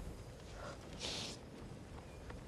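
A girl sniffles.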